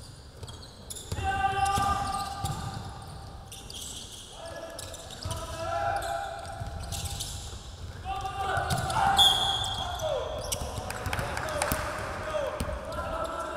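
Sneakers squeak sharply on a hardwood court.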